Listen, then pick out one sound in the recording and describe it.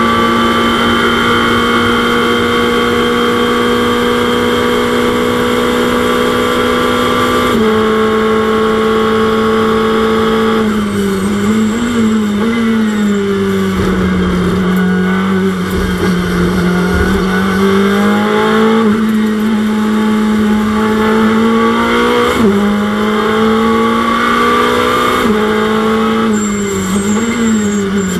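A racing car engine drones steadily, its pitch dipping and rising with gear changes.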